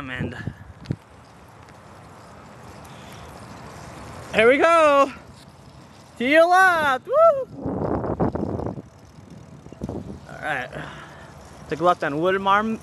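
Wheels roll steadily over pavement.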